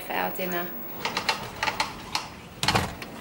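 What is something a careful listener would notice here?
A door latch clicks and rattles.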